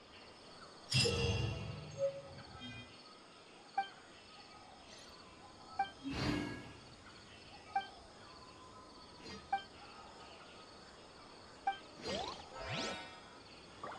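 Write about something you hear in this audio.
Soft swishing chimes sound as menu pages flip.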